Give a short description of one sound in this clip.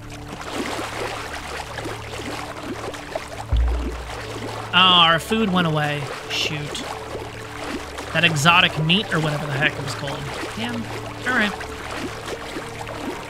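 Water splashes with steady swimming strokes.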